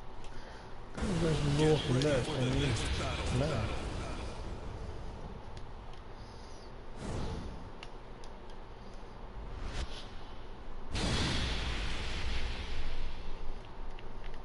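A fiery explosion roars.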